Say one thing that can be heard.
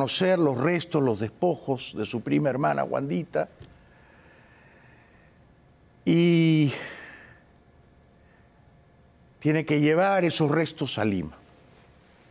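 A middle-aged man speaks with animation, close to a microphone, in bursts with pauses between them.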